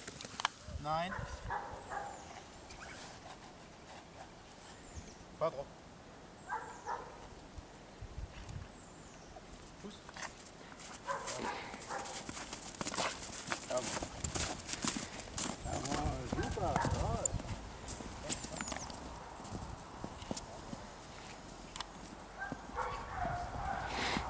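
A man gives short commands to a dog.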